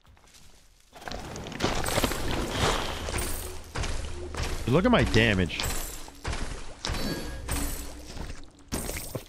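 Game combat effects clash and whoosh in a rapid burst.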